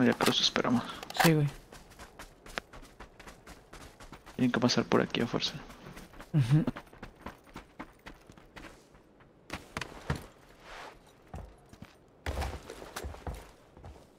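Footsteps run over grass and dirt.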